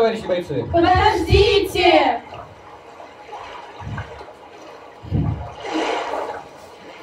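Young girls speak loudly and with animation in an echoing hall.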